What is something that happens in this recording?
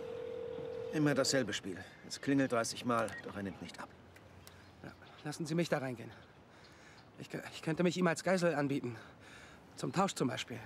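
A man speaks tersely nearby.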